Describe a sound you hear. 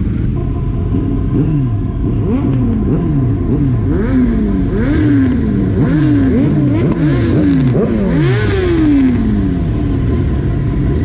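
Nearby motorcycles rev their engines again and again.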